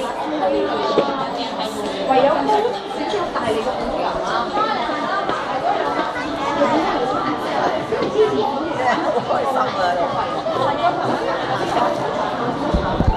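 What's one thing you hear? A woman talks softly to a small child close by.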